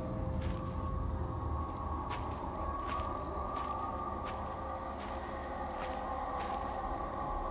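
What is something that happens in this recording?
Bare feet step softly on forest ground.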